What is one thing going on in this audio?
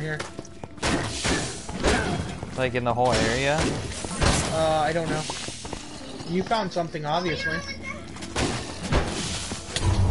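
Blows and magic blasts crack and thud in a quick fight.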